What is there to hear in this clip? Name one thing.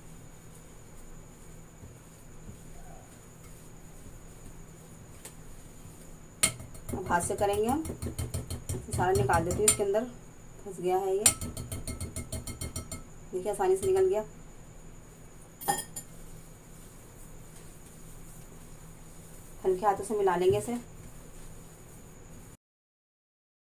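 Hands squish and press crumbly dough in a bowl.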